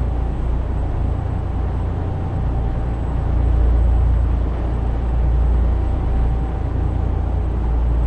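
Tyres roar on the road.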